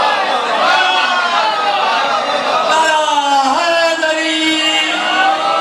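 A crowd sings along loudly.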